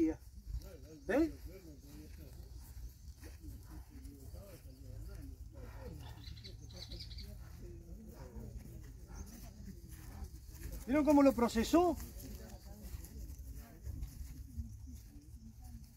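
A man talks calmly nearby outdoors.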